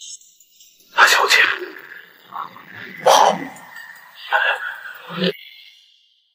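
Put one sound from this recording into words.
A man speaks with surprise, close by.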